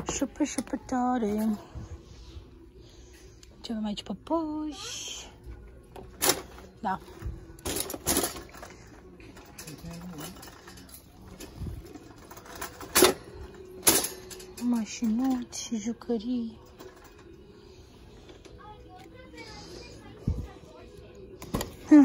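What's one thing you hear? A shopping cart rattles and clatters as it rolls over a hard floor.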